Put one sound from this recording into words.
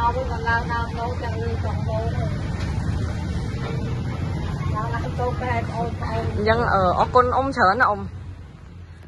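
An elderly woman talks calmly nearby.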